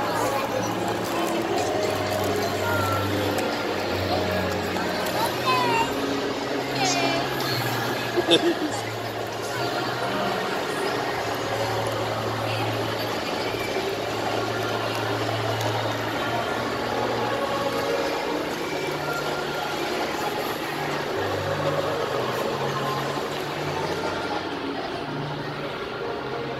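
Many people chatter in a large, echoing indoor hall.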